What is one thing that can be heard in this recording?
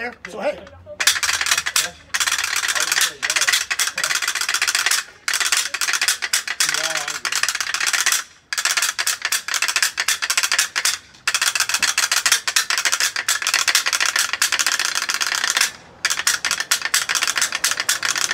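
A shaker rattles in fast, steady rhythms.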